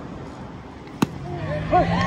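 A bat cracks against a ball outdoors.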